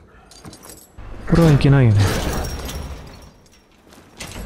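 Metal chains rattle against a gate.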